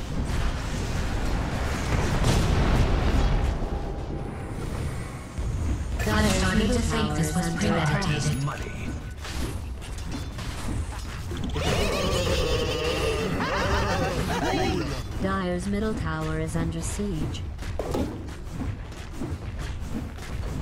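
Weapons clash and magic spells burst in a busy fantasy battle.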